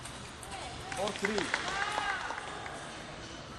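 A young player shouts after the point, in a large echoing hall.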